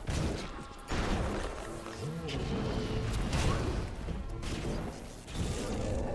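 Electricity crackles and zaps.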